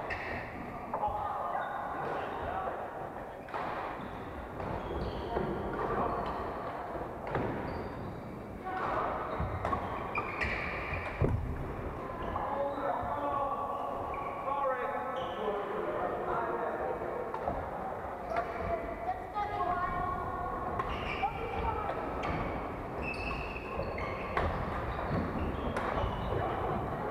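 Young men call out to each other across a large echoing hall.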